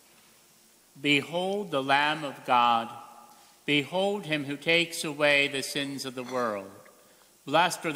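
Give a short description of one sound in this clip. A middle-aged man chants slowly through a microphone.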